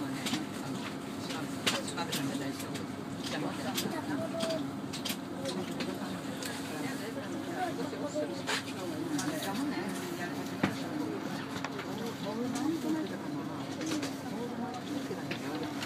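A train hums and rumbles as it slows to a halt.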